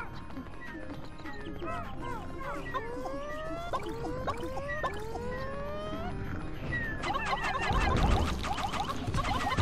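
Many tiny creatures chirp and squeak in high, rising voices.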